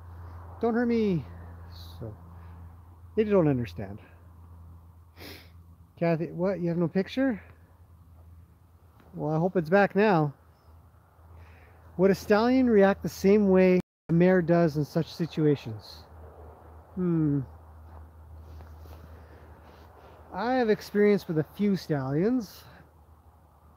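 A man talks calmly and close by, pausing between phrases.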